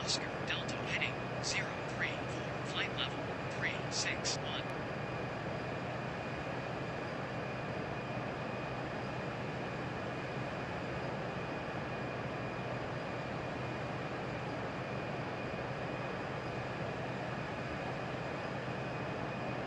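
A jet airliner's engines drone steadily from inside the cabin.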